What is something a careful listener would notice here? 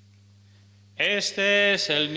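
An elderly man chants through a microphone.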